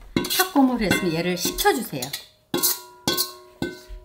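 Beans pour out of a metal bowl onto a metal tray with a rattling patter.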